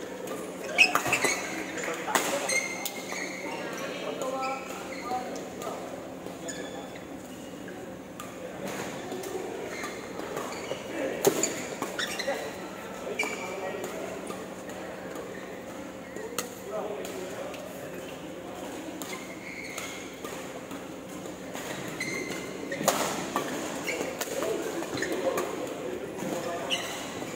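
Young men call out and chatter nearby in a large echoing hall.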